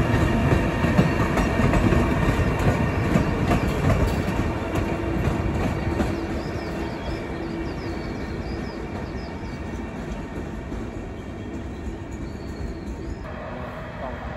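A locomotive rumbles along the tracks, loud at first and then fading into the distance.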